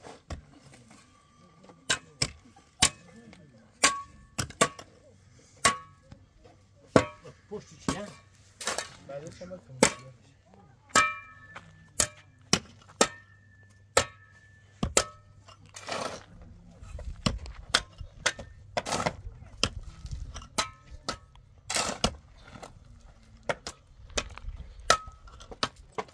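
Shovels scrape and thud into dry dirt and gravel.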